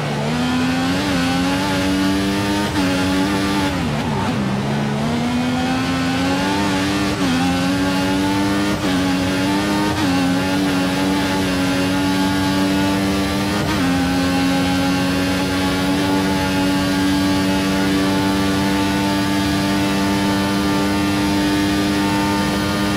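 A racing car engine screams at high revs, its pitch climbing and dropping sharply with each gear change.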